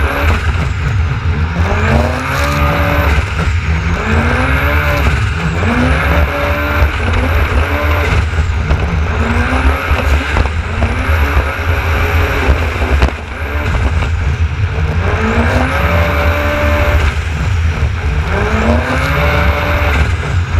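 Water splashes and sprays against the hull.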